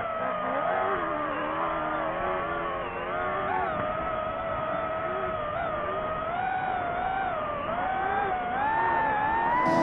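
A rally car engine revs hard, rising and falling as the car races along a dirt track.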